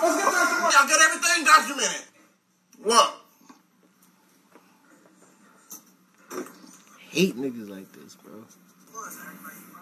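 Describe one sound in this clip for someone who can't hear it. A young man laughs and talks close by.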